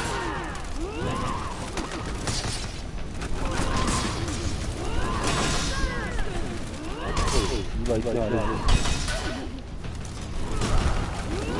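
Swords clash and clang with metallic rings.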